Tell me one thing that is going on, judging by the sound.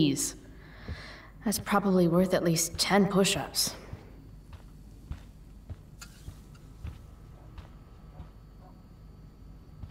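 Footsteps tread softly indoors.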